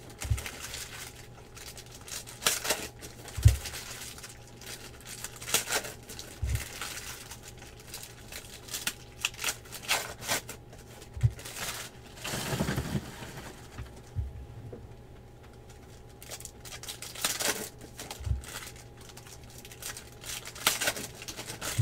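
Foil card wrappers crinkle and tear as they are ripped open.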